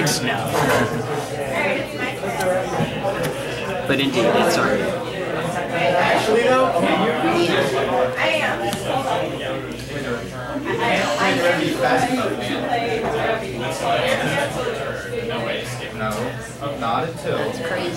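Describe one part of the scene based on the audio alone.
Playing cards slide and tap softly on a play mat.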